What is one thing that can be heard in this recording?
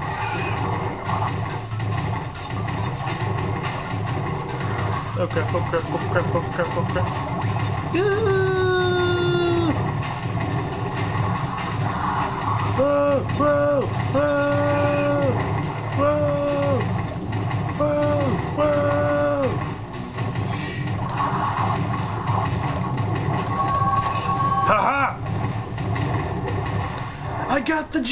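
Video game music plays through a television speaker.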